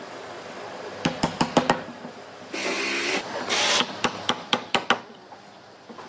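A wooden mallet knocks sharply on wooden pieces, several times.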